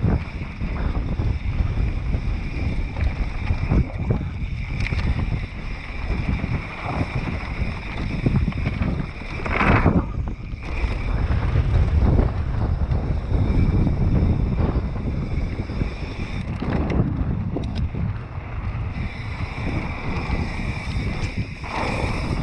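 Wind rushes loudly past a rider descending fast outdoors.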